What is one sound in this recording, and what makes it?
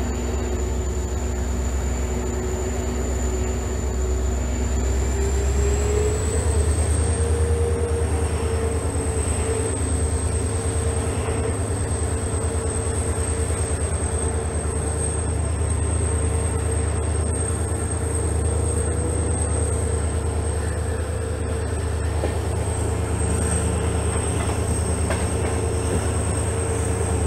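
A diesel locomotive engine hums and whines steadily close by, rising in pitch as it pulls away.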